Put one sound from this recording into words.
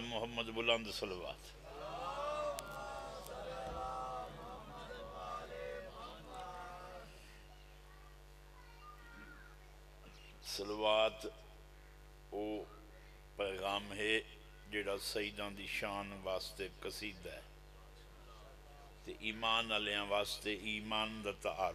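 An elderly man speaks passionately into a microphone, heard through loudspeakers.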